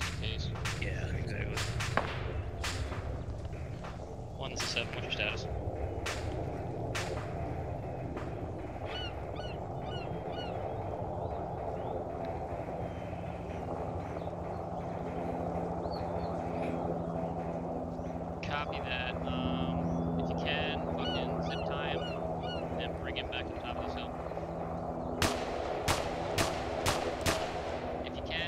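Gunshots crack out in short bursts, some near and some farther off.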